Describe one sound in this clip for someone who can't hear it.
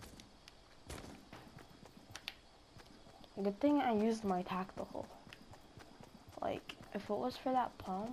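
Footsteps run over soft grass.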